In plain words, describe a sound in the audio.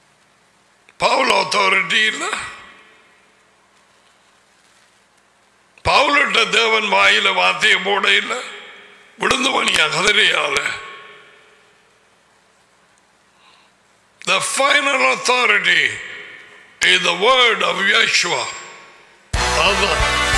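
An older man speaks emphatically into a microphone, in bursts with pauses between them.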